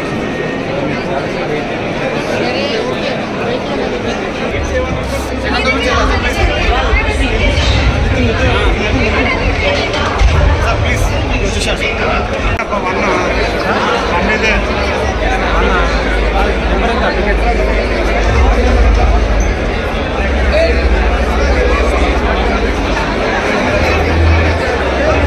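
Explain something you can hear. A large crowd of men and women chatters loudly all around, nearby.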